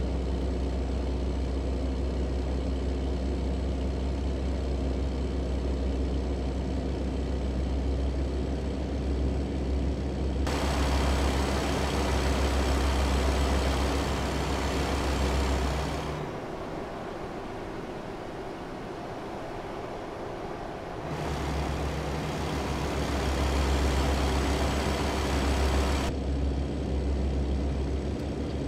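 A truck's diesel engine hums steadily from inside the cab.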